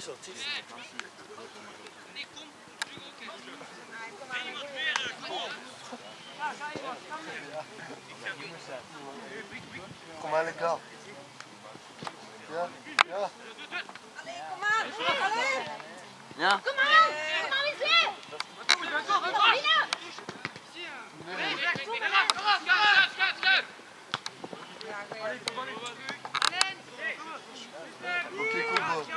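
Young men shout and call to each other outdoors on an open field.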